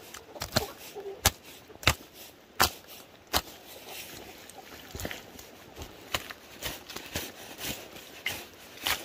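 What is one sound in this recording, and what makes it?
A hoe chops and scrapes through wet mud.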